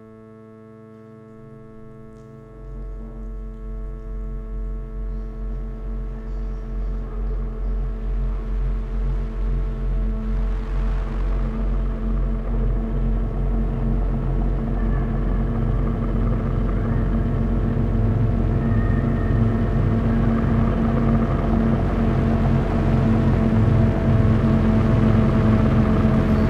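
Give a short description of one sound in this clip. Electronic music drones with a steady, layered hum that grows louder.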